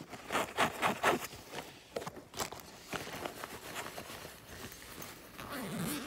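A zipper rasps open.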